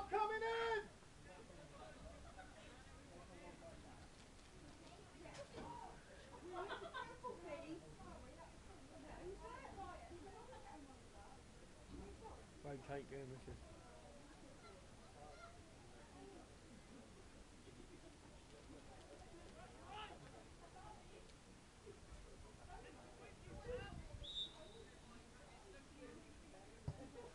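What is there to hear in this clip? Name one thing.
Men talk and call out at a distance across an open field.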